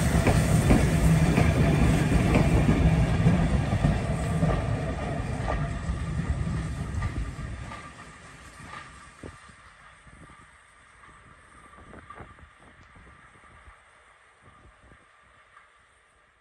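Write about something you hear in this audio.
Train carriages rumble and clatter along the rails.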